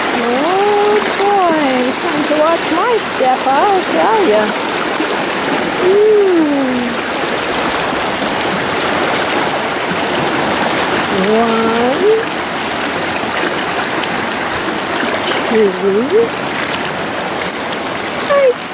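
Water rushes and splashes over rocks.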